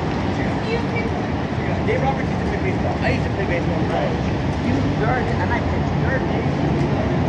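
People talk nearby on a busy sidewalk.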